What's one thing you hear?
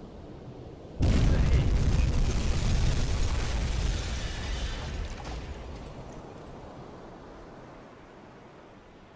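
A torpedo explodes against a ship with a loud, deep boom that slowly fades.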